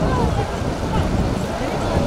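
Water splashes as people wade through it.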